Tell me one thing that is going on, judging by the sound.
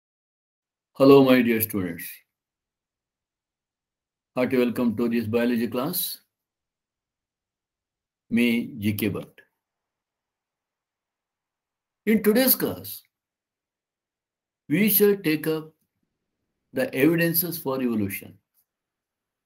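A man speaks calmly in short phrases over an online call, with pauses between them.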